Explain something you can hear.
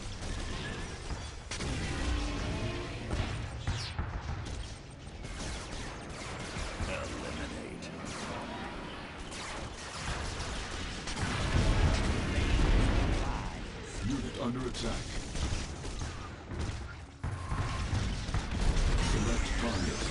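Explosions boom and rumble throughout a battle.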